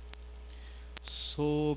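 A young man begins speaking into a microphone.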